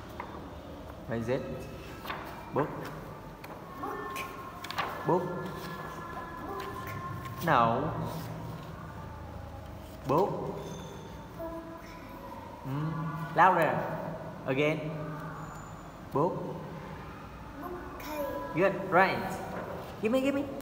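A young boy speaks close by in short, lively phrases.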